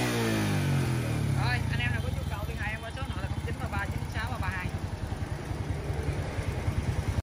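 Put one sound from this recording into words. A small motorcycle engine idles with a fast, steady putter.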